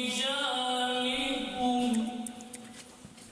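A man chants a recitation into a microphone in a reverberant hall.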